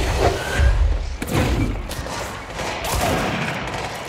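A chair crashes and breaks apart.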